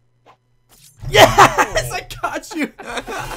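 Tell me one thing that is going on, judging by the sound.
A young man talks excitedly and loudly close to a microphone.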